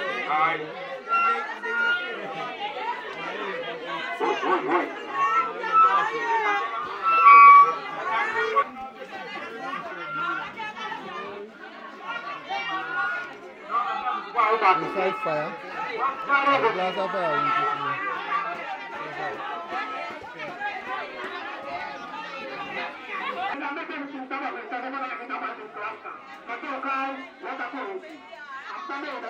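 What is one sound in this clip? A crowd of women and men chatter and call out outdoors.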